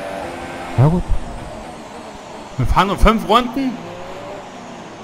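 A racing car engine whines and drops in pitch as the car slows.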